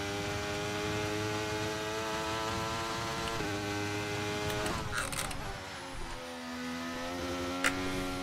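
A racing car engine screams at high revs, then drops in pitch as the car slows for a corner and climbs again.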